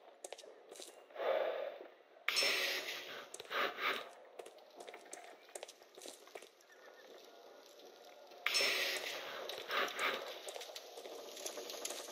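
Footsteps tread on cobblestones.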